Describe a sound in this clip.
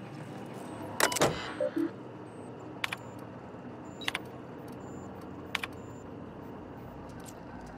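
A computer terminal clicks and beeps as options are chosen.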